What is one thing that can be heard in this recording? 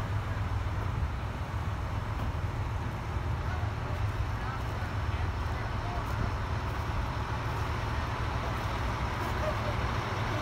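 A fire engine's diesel engine rumbles loudly nearby as it rolls slowly past.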